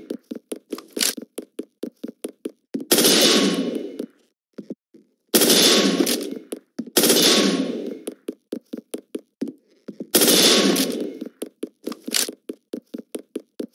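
Footsteps crunch rapidly on snow.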